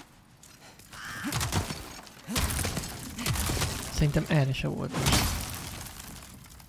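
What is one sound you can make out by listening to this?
Wooden planks crash and splinter as they break.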